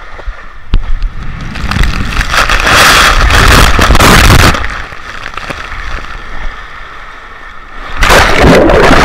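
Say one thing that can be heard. Water rushes and splashes as a rider slides down a water slide.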